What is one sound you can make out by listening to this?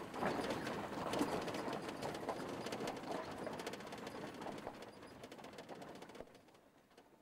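A van drives away on gravel and fades into the distance.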